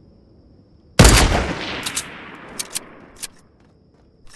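A sniper rifle fires once with a loud crack that rolls away in a long echo.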